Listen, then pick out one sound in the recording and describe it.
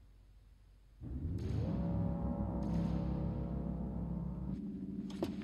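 An elevator motor starts up with a rising hum.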